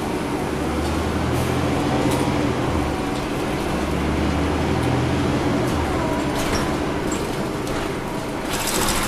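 A bus engine hums and drones steadily while driving.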